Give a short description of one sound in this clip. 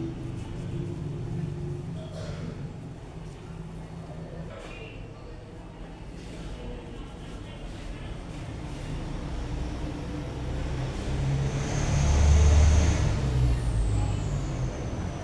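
Hands rub on skin and hair in a head massage.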